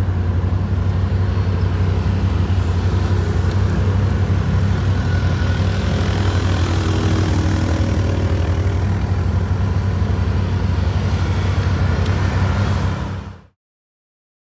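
Quad bike engines idle and rumble close by.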